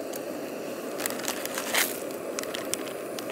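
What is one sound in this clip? A plastic packet crinkles.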